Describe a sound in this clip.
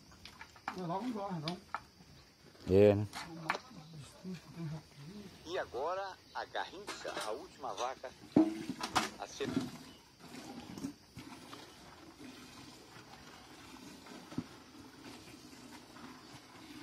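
Milk squirts in rhythmic streams into a bucket as a cow is milked by hand.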